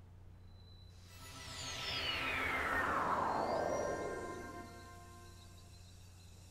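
A shimmering magical whoosh sweeps downward in pitch and fades.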